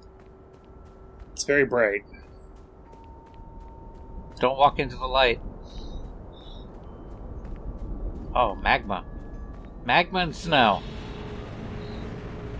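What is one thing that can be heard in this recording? Footsteps walk slowly over hard ground.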